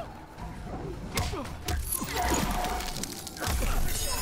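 Ice crackles and shatters with a sharp burst.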